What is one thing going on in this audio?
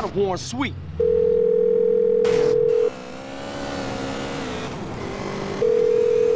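A phone dial tone sounds steadily.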